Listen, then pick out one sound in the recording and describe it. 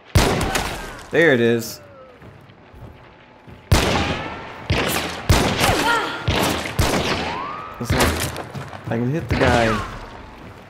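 A gun fires several loud shots that ring out and echo.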